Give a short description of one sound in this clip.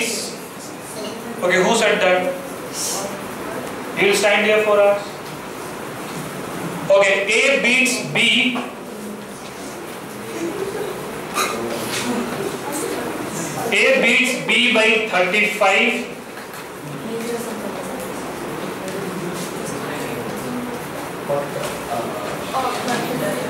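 A middle-aged man speaks calmly through a headset microphone.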